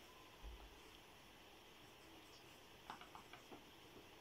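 A pencil writes and taps softly on paper.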